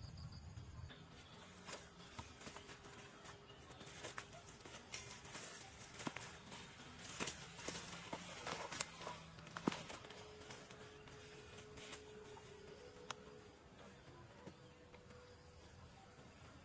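Leaves and stems rustle and snap as a person pushes through dense undergrowth.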